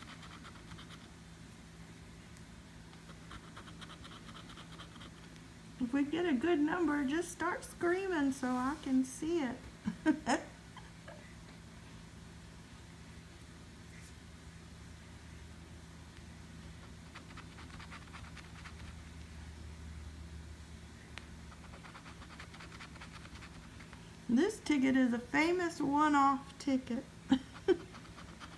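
A coin scrapes across a scratch card.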